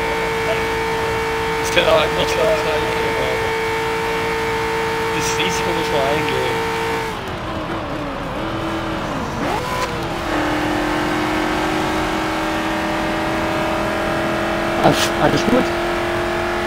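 A racing car engine drones at high revs, dropping in pitch briefly as the gear changes.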